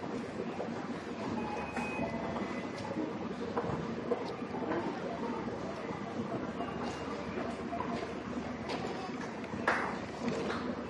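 A crowd chatters steadily in a busy, echoing indoor hall.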